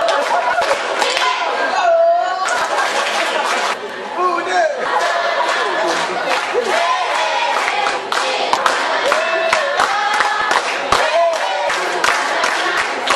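A group of young people sings and chants together in a large echoing hall.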